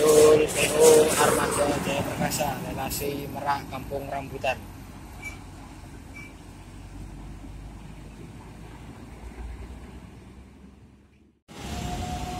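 A bus engine rumbles as it pulls away and fades into the distance.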